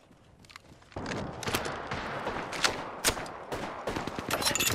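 Gunshots crack in quick bursts with a short echo.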